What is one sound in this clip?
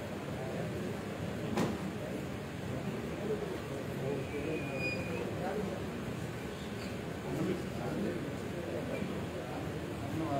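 Several people talk in a low murmur nearby.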